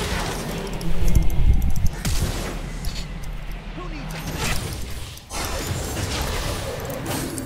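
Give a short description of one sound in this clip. Video game weapons strike with sharp hits.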